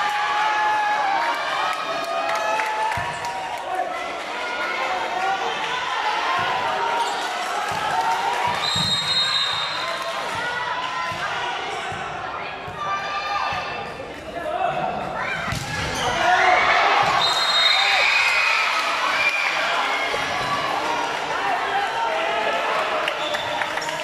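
A volleyball thuds as it is hit and bounces.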